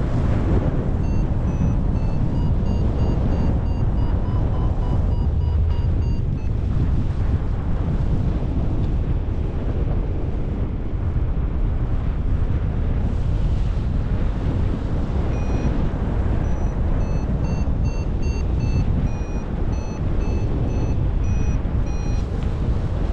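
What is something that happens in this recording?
A flight instrument beeps in quick repeated tones that shift in pitch.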